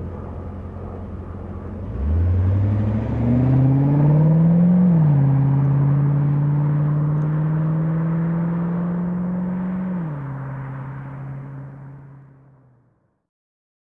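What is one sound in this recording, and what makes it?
A sports car engine idles, then revs hard as the car accelerates away, shifting gears and fading into the distance.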